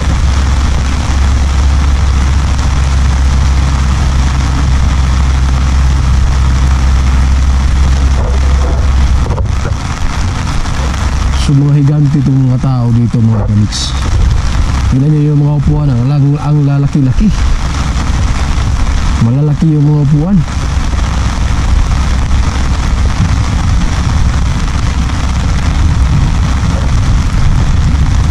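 Rain patters steadily on an umbrella overhead.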